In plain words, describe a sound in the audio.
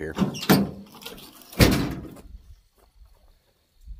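A tailgate drops open with a thud.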